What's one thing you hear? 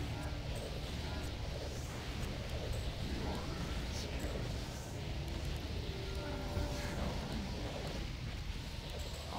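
Magic spells crackle and whoosh in a game.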